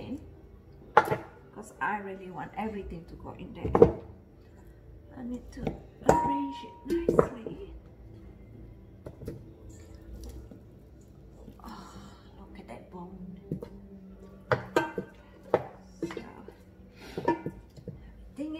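Raw meat slaps and thuds against a metal pot.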